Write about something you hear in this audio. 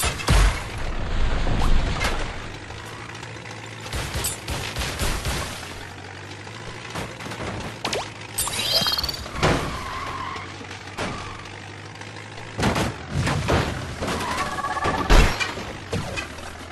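Cars crash and thump into each other.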